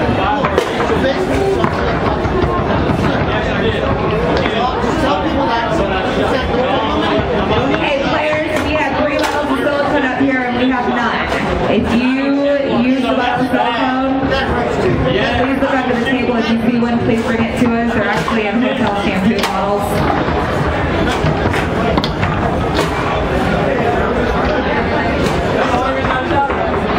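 A small hard ball clacks against plastic figures and table walls.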